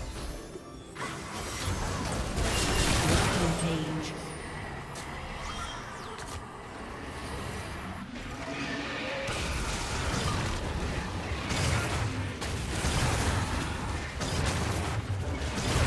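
Video game battle effects crackle, whoosh and thud.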